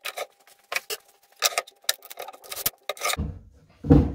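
Wooden blocks knock and clatter on a wooden bench.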